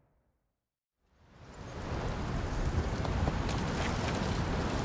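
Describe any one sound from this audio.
Strong wind roars outdoors in a snowstorm.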